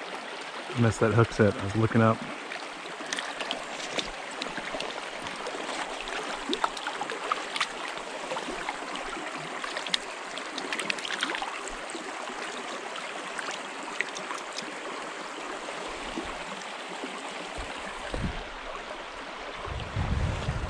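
A shallow stream burbles steadily over stones.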